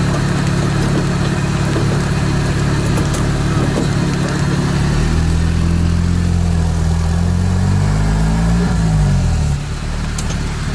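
A vehicle's diesel engine rumbles loudly close by and changes pitch as it works.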